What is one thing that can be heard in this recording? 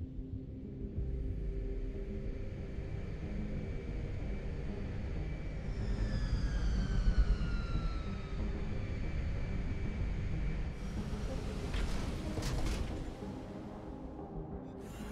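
A heavy flying vehicle hums and roars low as it descends and hovers.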